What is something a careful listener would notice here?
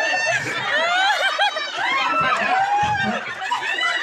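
A woman laughs loudly close by.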